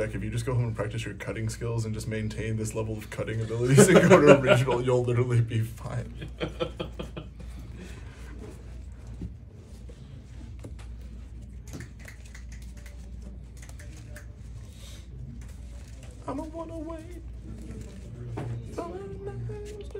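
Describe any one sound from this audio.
Playing cards are shuffled and flicked through by hand.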